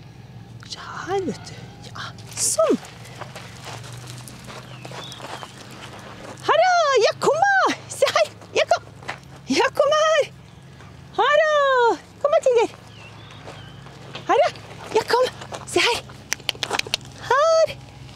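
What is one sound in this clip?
A woman calls out in a high, excited voice.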